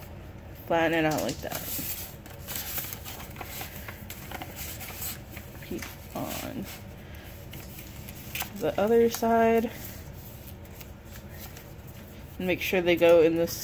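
Paper rustles and creases as it is folded by hand.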